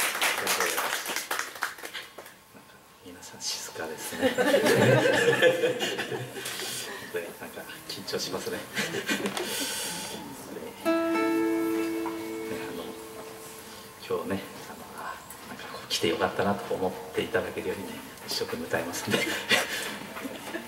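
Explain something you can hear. Two acoustic guitars are strummed and picked.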